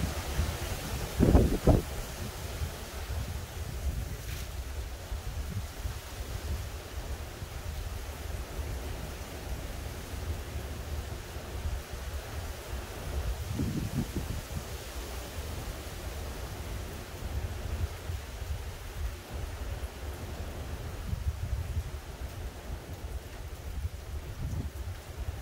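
Wind blows steadily outdoors and rustles tree leaves.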